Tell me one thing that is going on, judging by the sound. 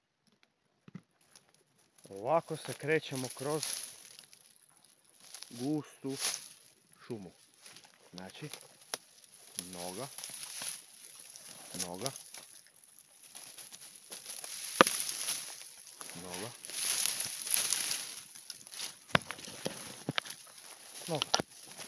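Dry leaves crunch and twigs snap underfoot as someone walks.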